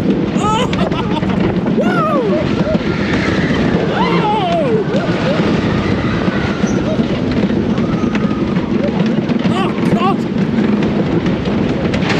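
Riders scream and shout with excitement.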